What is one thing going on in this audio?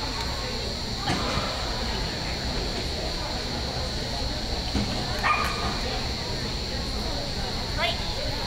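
A woman calls out commands to a dog in a large indoor arena.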